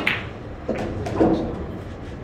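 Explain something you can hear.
A cue stick strikes a billiard ball with a sharp click.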